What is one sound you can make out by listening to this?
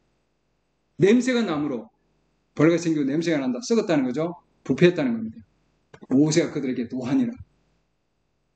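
An elderly man speaks calmly into a microphone over an online call, with short pauses.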